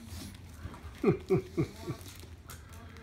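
A small dog whimpers several times in short, falling cries.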